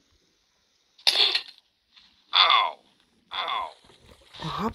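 A game character grunts in pain several times while burning.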